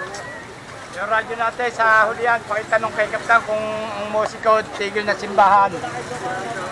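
A man talks loudly into a handheld radio close by.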